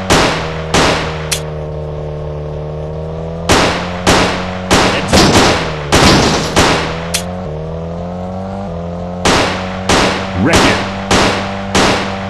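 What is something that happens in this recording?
A car engine hums steadily and shifts in pitch as it drives.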